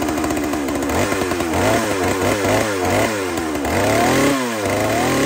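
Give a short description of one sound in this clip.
A chainsaw engine revs up and down repeatedly.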